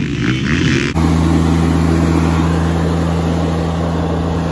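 A riding mower engine hums steadily close by.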